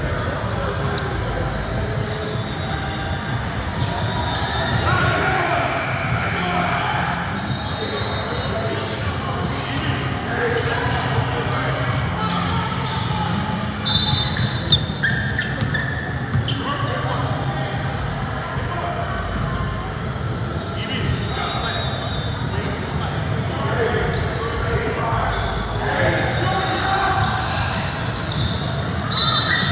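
Voices of players and spectators chatter throughout a large echoing gym.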